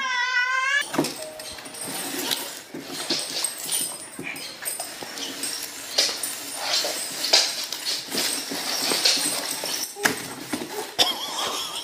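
A cardboard box rustles and scrapes.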